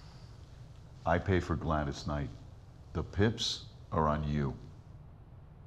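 A second man answers calmly.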